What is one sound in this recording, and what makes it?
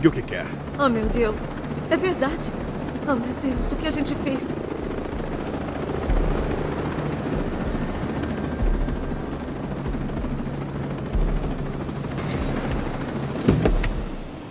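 A helicopter's rotor thumps and its engine whines overhead.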